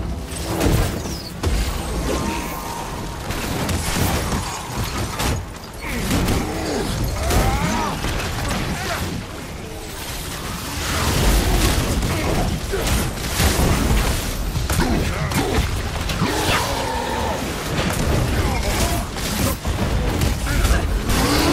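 Heavy punches and blows land with loud thuds.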